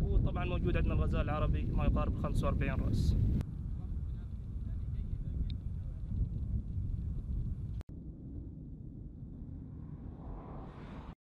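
Wind rumbles low against a microphone outdoors.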